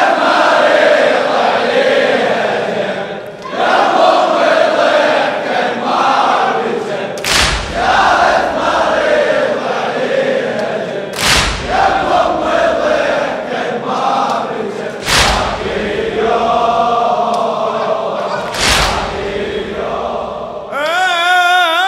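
A large crowd of men chants together in an echoing hall.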